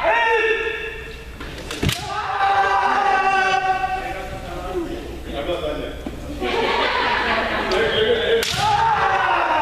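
Fencers shout loudly in a large echoing hall.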